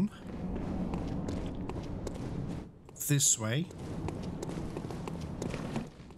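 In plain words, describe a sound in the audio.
Footsteps fall on cobblestones.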